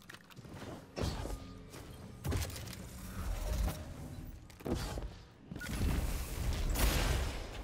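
Gunshots and blasts ring out in quick bursts.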